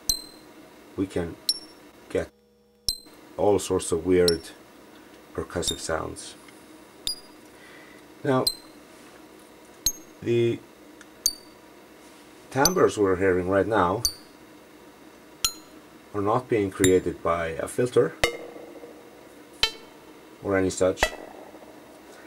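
A modular synthesizer plays short, bubbling electronic notes in bursts.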